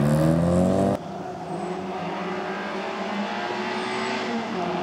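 A third rally car engine hums as it approaches.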